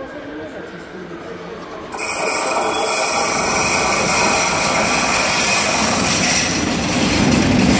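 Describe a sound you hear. A diesel locomotive rumbles and hums as it approaches.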